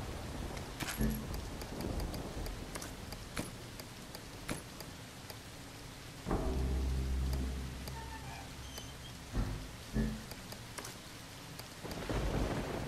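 Soft clicks sound as menu items are picked.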